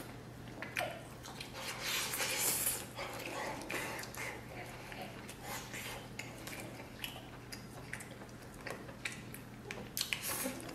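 A man chews and slurps food noisily close to the microphone.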